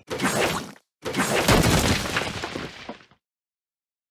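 Metal bolts clatter and scatter apart.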